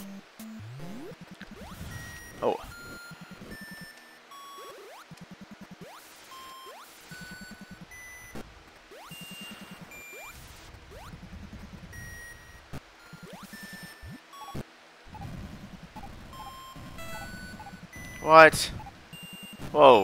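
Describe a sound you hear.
Short electronic zaps of a video game blaster fire in quick bursts.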